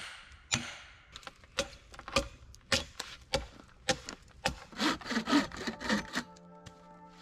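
Heavy blows of a hammer knock against wooden posts.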